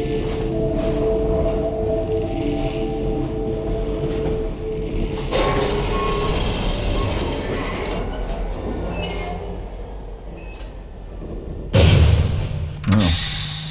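A train carriage rumbles and rattles along the tracks.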